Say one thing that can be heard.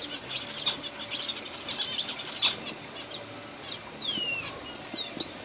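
Small animals squeak and chirp in quick, high bursts.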